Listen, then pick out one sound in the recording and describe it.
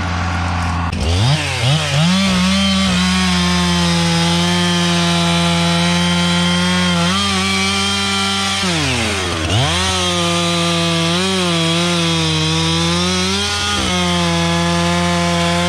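A chainsaw starts, revs up and roars while cutting through wood, its pitch dipping and rising.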